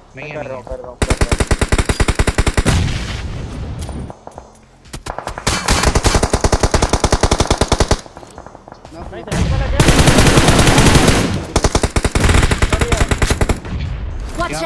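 Rapid bursts of automatic rifle fire crack out close by.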